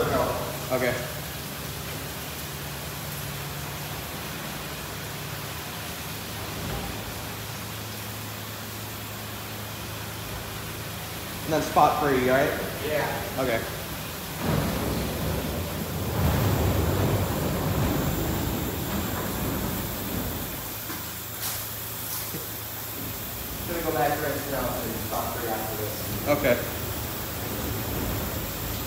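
Car wash brushes spin with a steady whirring hum.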